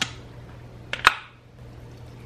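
A plastic container knocks down onto a stone counter.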